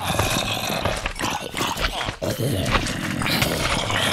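A sword strikes a zombie with dull thuds.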